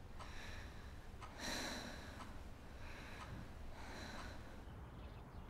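A young woman speaks quietly and softly, close by.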